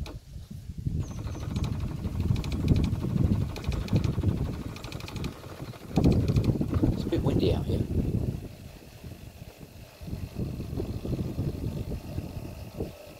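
A pod coffee machine hums as its pump runs.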